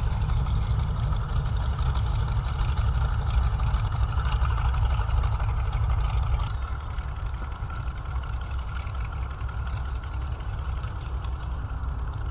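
Propeller engines of a vintage plane drone loudly as it taxis past and fades away.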